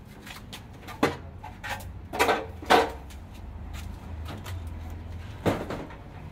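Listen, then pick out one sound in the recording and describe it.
Metal parts clatter and knock as a man handles them.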